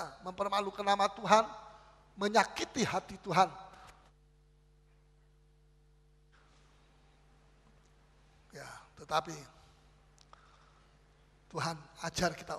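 An older man speaks with animation through a microphone in an echoing hall, pausing between phrases.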